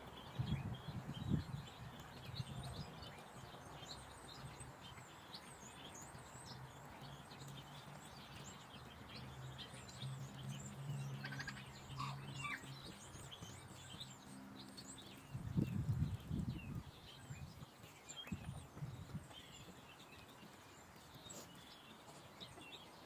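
Birds chirp outdoors.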